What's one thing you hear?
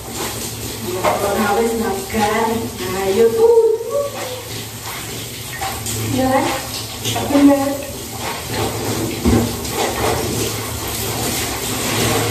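Wet clothes splash and squelch in a tub of water as they are scrubbed by hand.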